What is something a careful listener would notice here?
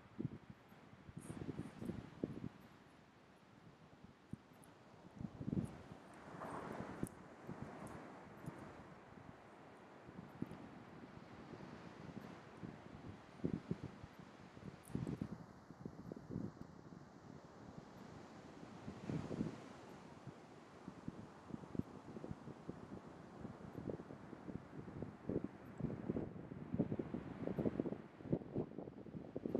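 Shallow water trickles and ripples over sand.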